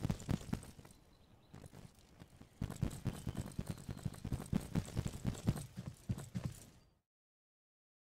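Footsteps thud steadily on pavement and grass.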